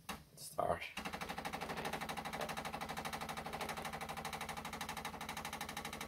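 A coffee machine's pump hums and pulses rapidly.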